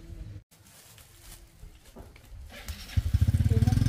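A plastic bag rustles as it is handled.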